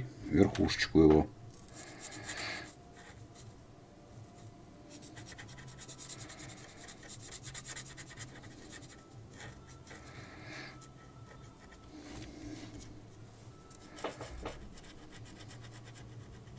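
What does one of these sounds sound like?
A marker scratches softly across paper.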